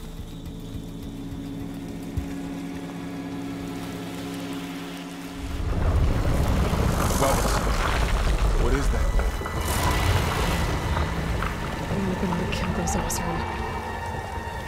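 Footsteps rustle through dense leafy plants and grass.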